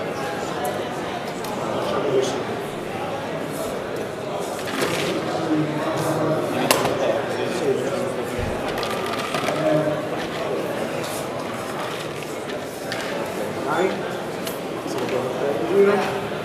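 Metal utensils clink against a pot.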